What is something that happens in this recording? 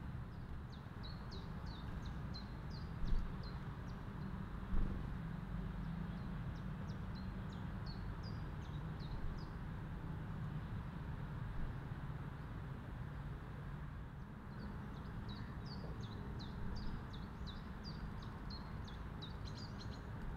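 A small bird chirps in quick high bursts nearby.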